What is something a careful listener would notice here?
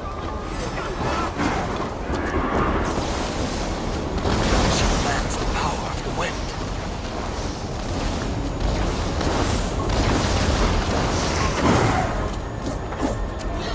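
Blades swing and clash in a fight.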